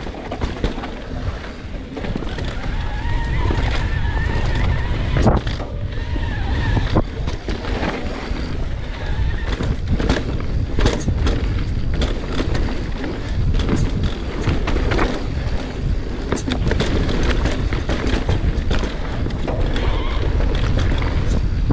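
Bicycle tyres roll and crunch over a bumpy dirt trail.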